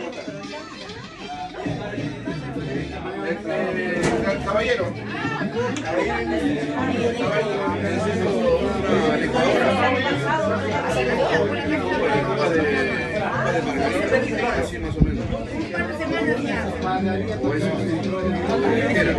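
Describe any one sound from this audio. A crowd of men and women chatter and laugh close by.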